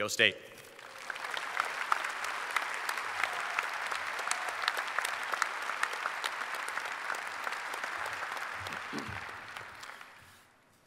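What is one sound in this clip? A crowd applauds steadily, then fades.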